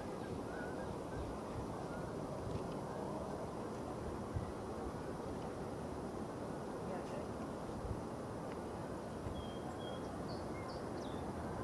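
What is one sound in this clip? The jet engines of a Boeing 777 airliner roar from a distance as it rolls down the runway after landing.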